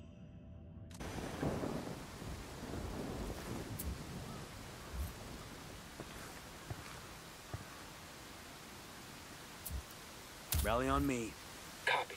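A steady wind blows outdoors.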